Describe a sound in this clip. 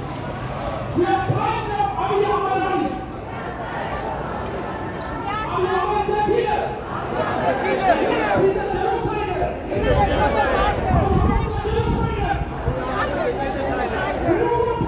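A crowd of marchers chants loudly in unison outdoors.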